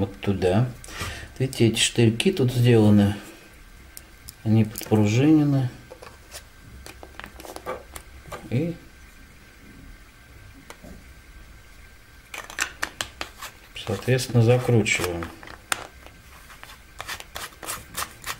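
Hard plastic parts click and knock together in someone's hands.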